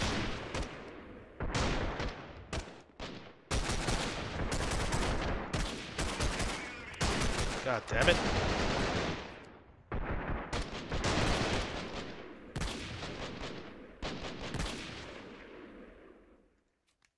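Rifle shots crack repeatedly and echo away.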